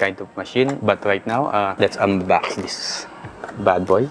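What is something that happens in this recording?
Cardboard scrapes and rustles as a box slides out of its packaging.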